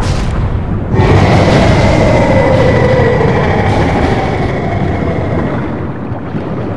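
Lava erupts with a deep, roaring rumble.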